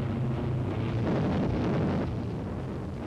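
A bomb explodes with a dull boom.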